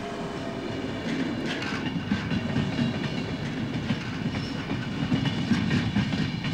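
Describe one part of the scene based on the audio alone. An electric train rumbles slowly along the tracks.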